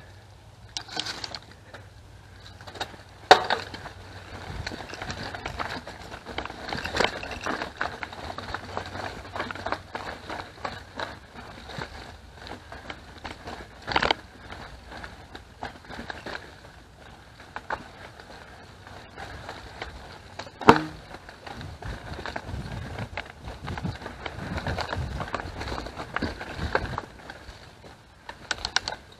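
A bicycle frame rattles and clatters over bumps.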